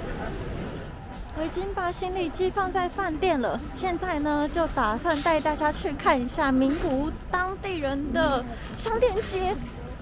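A young woman talks cheerfully close to the microphone.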